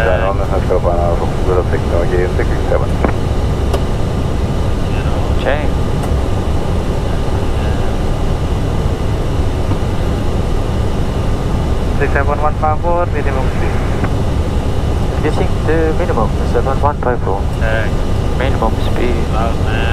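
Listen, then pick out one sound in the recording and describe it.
A young man speaks calmly over a headset microphone.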